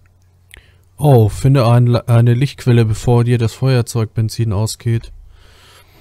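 A man talks loudly and with animation into a close microphone.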